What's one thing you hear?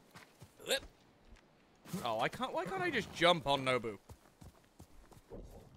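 A horse gallops over soft ground.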